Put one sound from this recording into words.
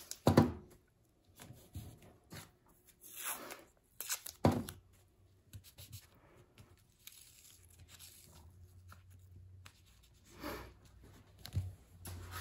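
Fingers rub and press tape down onto paper.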